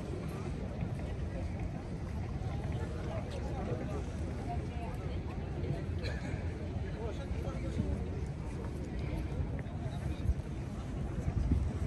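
Many people talk at a distance in a busy open space.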